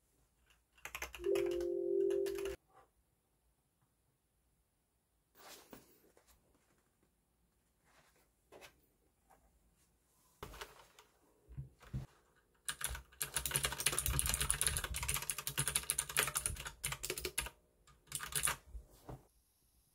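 Keys on a keyboard clack quickly as fingers type.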